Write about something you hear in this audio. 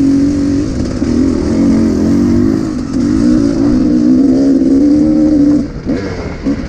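A dirt bike engine drones loudly up close.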